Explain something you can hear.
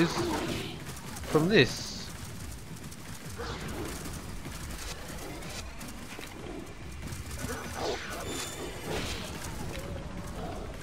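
Tigers growl and snarl as they attack.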